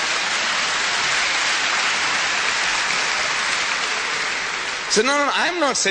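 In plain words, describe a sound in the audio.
A large audience applauds in a big hall.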